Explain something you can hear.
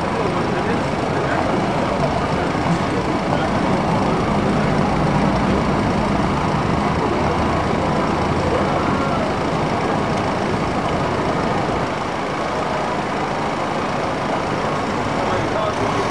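Traffic rumbles past on a busy street.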